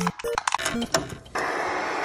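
A button clicks under a finger.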